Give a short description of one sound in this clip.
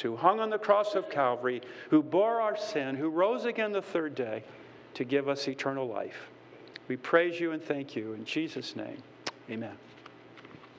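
An older man speaks calmly and earnestly through a microphone.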